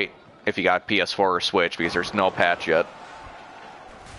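Bowling pins crash and scatter.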